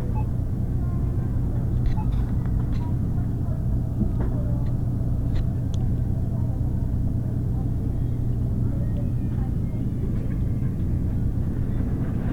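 A refrigerator hums with a steady low drone.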